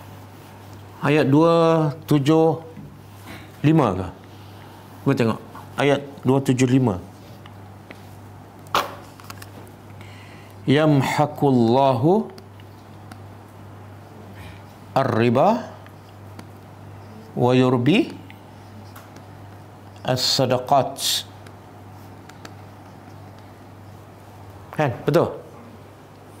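A man speaks slowly with long pauses, heard through a microphone.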